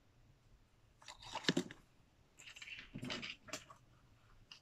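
Objects knock and rustle close by.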